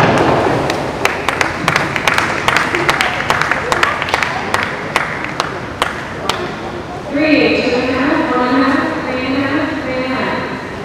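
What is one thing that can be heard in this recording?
A swimmer splashes through the water with strokes.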